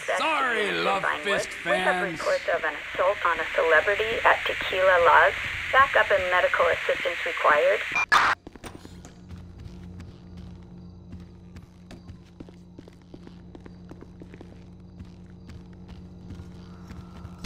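A man's footsteps tap on a hard floor.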